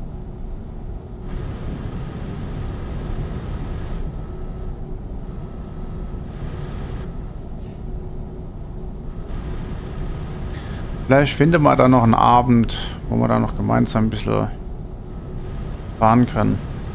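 A truck engine drones while the truck drives along a road.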